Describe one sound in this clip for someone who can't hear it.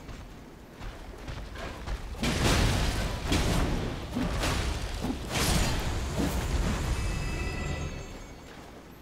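Swords clang and slash in a fierce fight.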